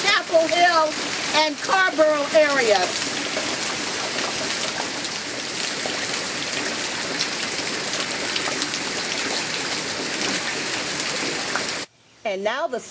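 Heavy rain pours steadily on an umbrella.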